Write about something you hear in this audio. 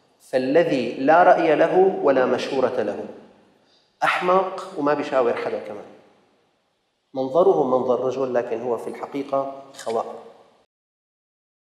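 A middle-aged man speaks with animation into a microphone.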